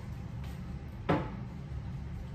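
A pot knocks down onto a wooden table.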